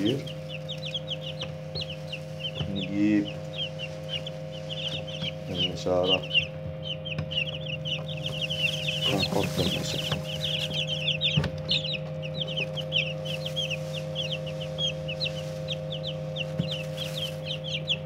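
Many chicks peep constantly in high, busy chirps.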